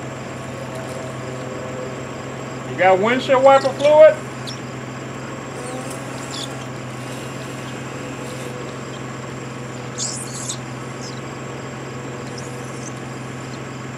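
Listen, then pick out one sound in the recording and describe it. Windshield wipers sweep back and forth with faint squeaks.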